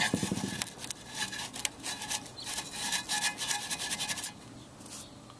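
A finger scratches and taps over dusty metal parts.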